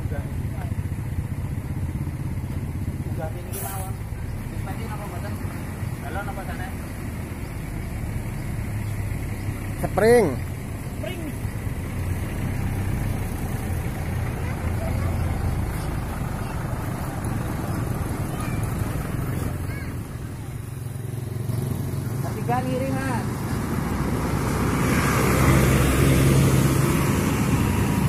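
A bus engine rumbles low nearby.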